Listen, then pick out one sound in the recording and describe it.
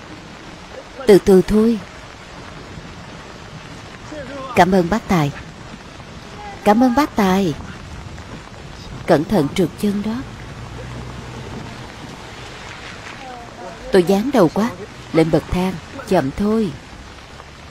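A young man speaks softly and urgently.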